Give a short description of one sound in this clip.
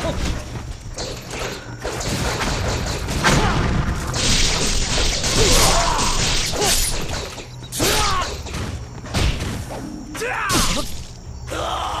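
Blades clash and slash sharply in quick strikes.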